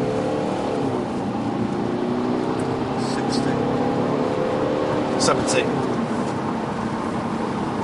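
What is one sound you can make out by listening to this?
A car engine hums steadily from inside the cabin, rising and falling in pitch as the car changes speed.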